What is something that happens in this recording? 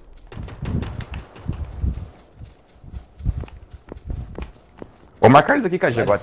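Footsteps thud and rustle through tall grass at a quick pace.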